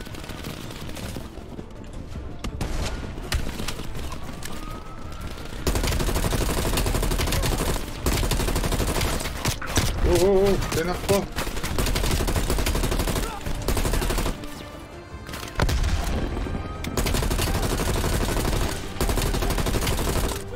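Rifle shots crack one after another.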